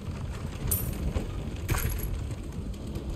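A short bright chime rings as an item is picked up.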